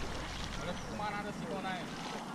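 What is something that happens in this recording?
A man in a kayak calls out from across the water.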